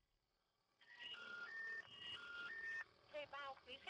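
A phone ring tone beeps through a handset.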